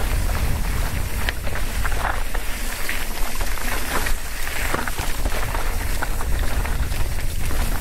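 Wind rumbles and buffets loudly against a microphone outdoors.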